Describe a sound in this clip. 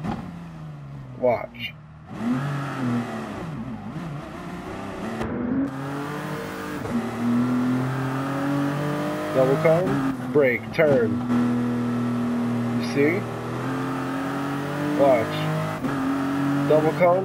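A racing prototype engine accelerates hard through the gears.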